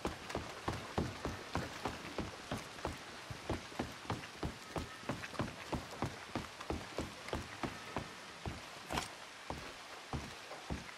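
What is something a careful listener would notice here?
Footsteps thud quickly on wooden boards.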